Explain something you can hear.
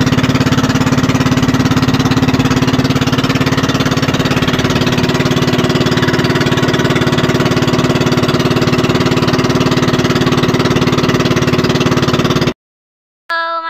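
A boat's motor drones loudly and steadily.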